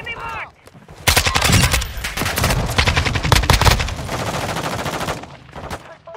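Rapid rifle gunfire rattles in bursts.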